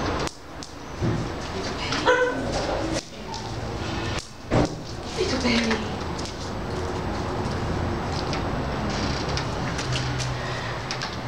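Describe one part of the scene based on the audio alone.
A woman speaks calmly to a dog close by.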